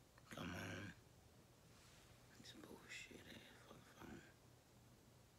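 A man speaks quietly and briefly, close by.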